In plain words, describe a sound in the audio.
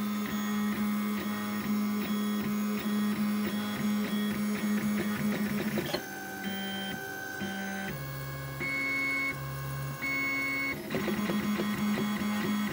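An electric motor whirs with a humming tone that ticks in quick pulses and changes pitch now and then.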